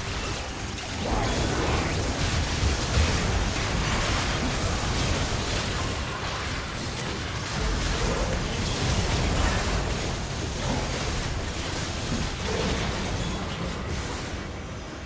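Magic blasts and blows clash in a frantic game battle.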